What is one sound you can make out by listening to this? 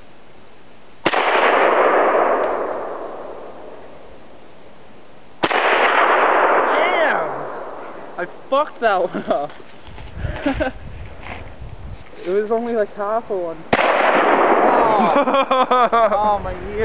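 Rifle shots boom one at a time and echo through the woods.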